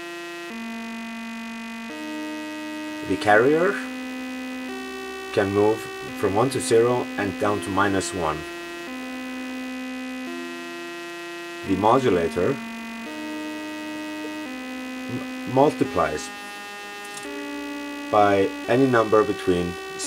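A modular synthesizer plays a sequence of steady, changing electronic tones.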